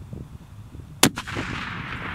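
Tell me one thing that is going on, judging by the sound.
A rifle fires a single loud shot outdoors.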